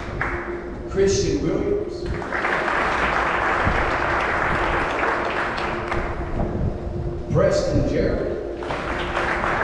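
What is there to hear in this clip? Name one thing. A man reads out names through a loudspeaker in a large echoing hall.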